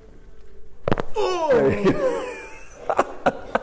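A young man groans loudly.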